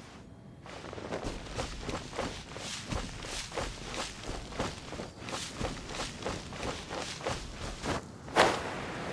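A game character's footsteps rustle quickly through grass.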